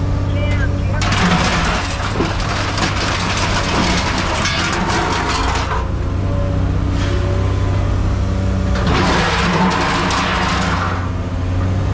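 Scrap metal clatters and crashes as a grapple moves it.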